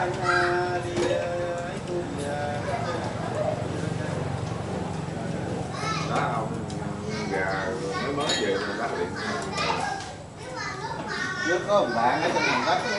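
Several men chat and laugh around a table nearby.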